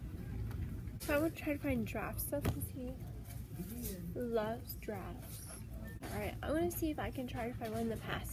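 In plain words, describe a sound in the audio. A young woman talks with animation, close to the microphone.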